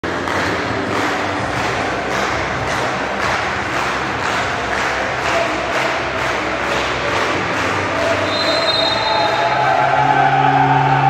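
A crowd claps in a steady rhythm in a large echoing hall.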